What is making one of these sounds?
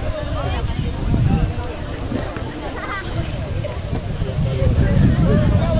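Distant spectators chatter and call out.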